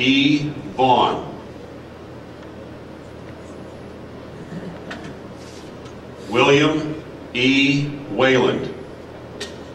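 A man speaks loudly into a microphone in short bursts, with long pauses.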